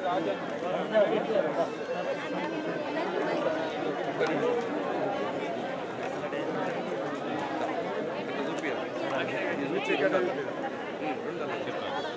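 A crowd of men chatter all around, close by.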